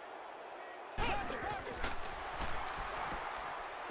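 Football players' pads clash in a tackle.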